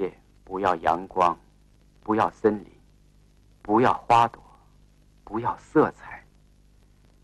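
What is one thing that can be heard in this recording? A man speaks calmly and quietly nearby.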